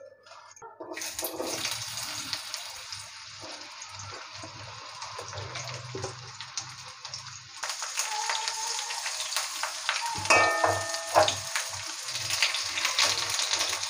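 Potato wedges sizzle loudly in hot oil.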